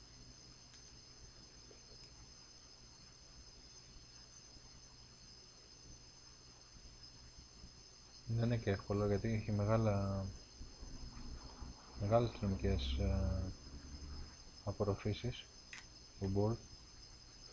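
Solder sizzles faintly under a hot soldering iron and wick.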